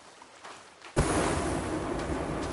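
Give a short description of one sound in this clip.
A lighter flame hisses and roars close by.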